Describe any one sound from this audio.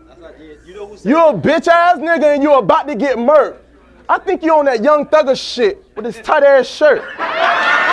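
A man raps forcefully and loudly into a microphone.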